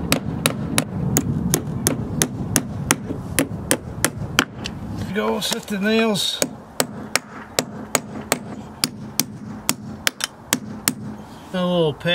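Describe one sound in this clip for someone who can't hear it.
A hammer taps repeatedly in quick, steady blows.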